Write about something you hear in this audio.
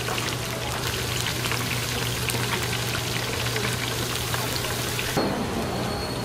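Battered food sizzles in deep oil.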